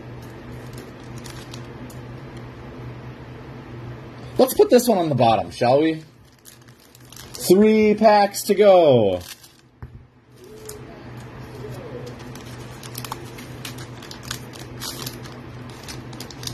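Trading cards slide and tap against each other as they are flipped through.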